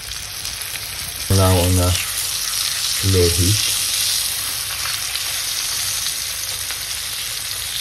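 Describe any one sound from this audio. A wooden spoon scrapes against a frying pan.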